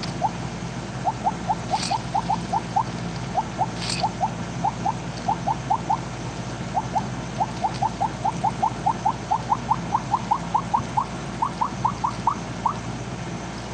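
Short rising electronic blips sound in quick runs as a game snake eats pellets.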